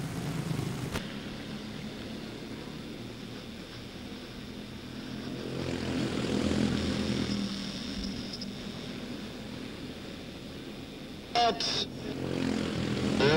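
Small racing engines buzz and roar as karts race past.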